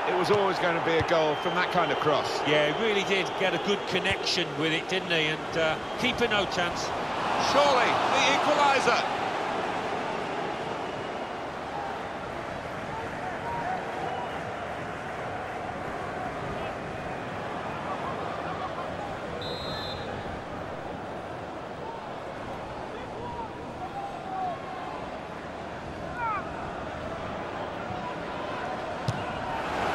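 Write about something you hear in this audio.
A large crowd roars steadily in a stadium, swelling into a loud cheer.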